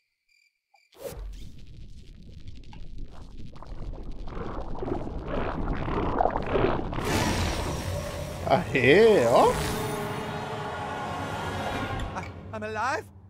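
A long, loud fart blasts and hisses, swelling and then fading.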